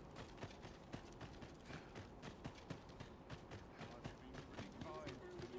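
Footsteps run quickly over dry ground.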